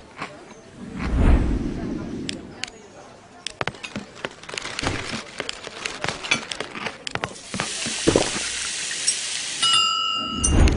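Quick game clicks and pops sound one after another.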